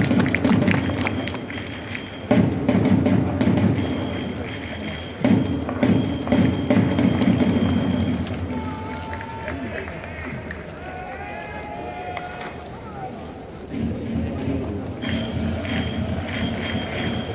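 A stadium crowd cheers and chants loudly in a large open space.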